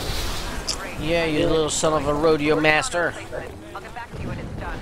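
A woman speaks calmly over a radio.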